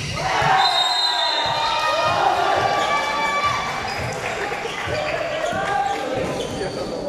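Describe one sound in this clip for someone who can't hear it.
A crowd of young people cheers and shouts in a large echoing hall.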